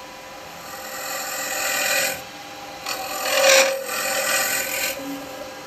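A cutting tool scrapes and hisses against spinning resin.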